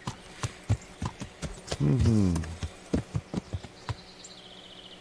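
A horse's hooves clop on the forest ground.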